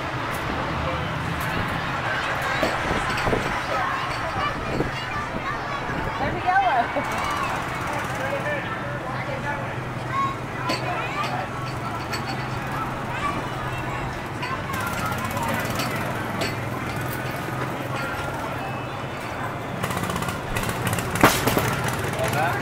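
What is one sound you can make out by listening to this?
A busy outdoor crowd chatters all around.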